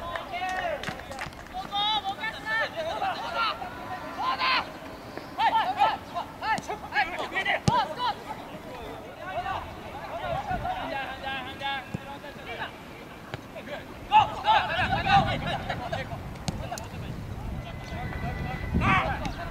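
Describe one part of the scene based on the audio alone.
Young men shout and call out to each other across an open field.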